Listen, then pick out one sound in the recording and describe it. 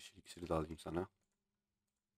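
A man speaks briefly into a microphone, close up.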